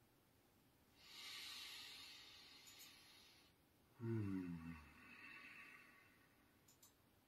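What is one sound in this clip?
A man sighs deeply, close to a microphone.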